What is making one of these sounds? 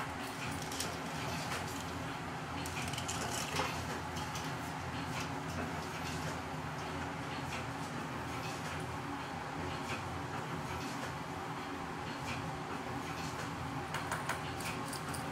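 Metal clinks against the rim of a pot.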